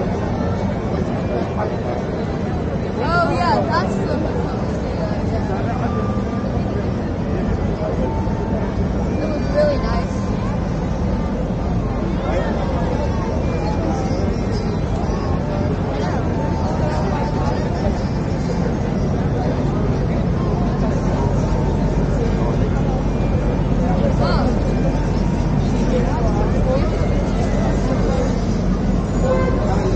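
Traffic rumbles steadily nearby.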